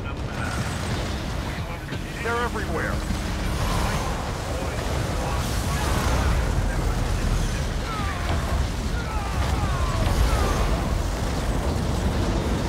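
Gunfire and explosions rattle in a battle.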